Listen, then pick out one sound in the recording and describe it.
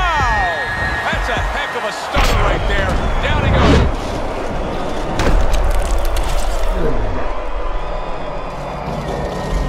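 A large crowd roars and cheers in an echoing arena.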